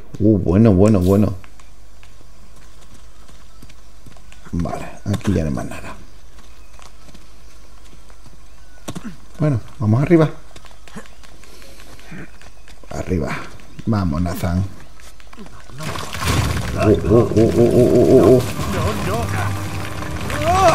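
A man speaks tensely, close by.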